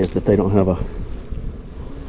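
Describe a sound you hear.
A metal tool scrapes against wood.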